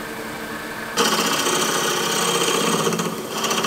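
A scraper hisses loudly against spinning wood.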